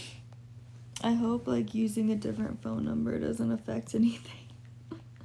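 A young woman speaks casually close to a microphone.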